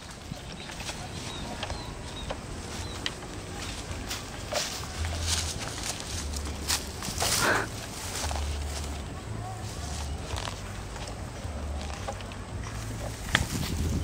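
Branches and leaves rustle as people push through them.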